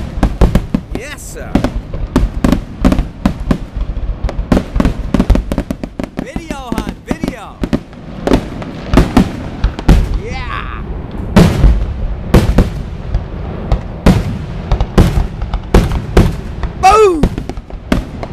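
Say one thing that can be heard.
Firework rockets whistle as they shoot up.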